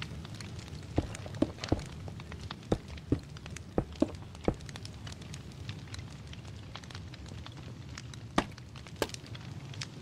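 Blocks knock into place with short, sharp thuds.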